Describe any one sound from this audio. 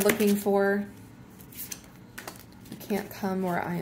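A card slides and taps onto a table.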